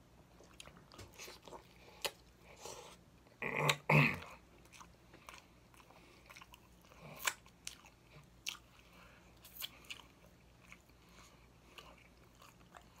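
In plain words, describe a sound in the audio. A man chews and bites into crispy food close to a microphone.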